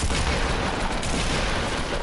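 Gunfire crackles in rapid shots.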